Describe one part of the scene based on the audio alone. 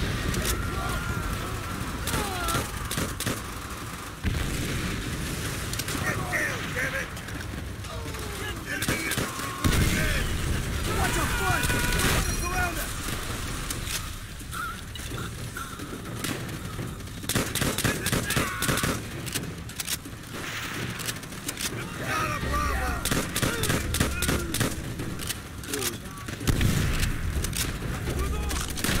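Rifle shots crack repeatedly at close range.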